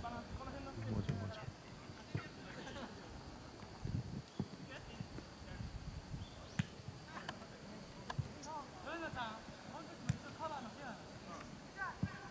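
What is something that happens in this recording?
Young men shout to each other from a distance across an open field.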